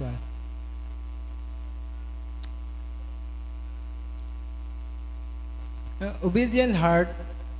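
A young man speaks through a microphone and loudspeakers in an echoing room, pausing between phrases.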